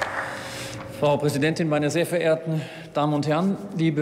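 A man speaks steadily into a microphone in a large hall.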